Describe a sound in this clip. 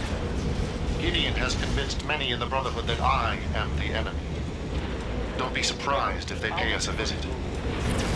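A man speaks calmly over a radio.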